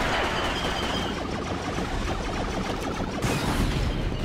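Laser blasters fire in rapid zapping bursts.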